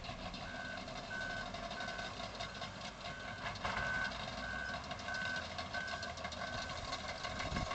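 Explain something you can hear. A reversing alarm beeps at an even pace from a distant loader.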